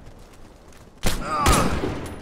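A rifle shot cracks loudly.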